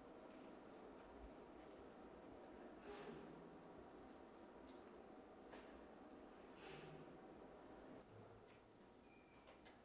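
Footsteps walk slowly down a hallway.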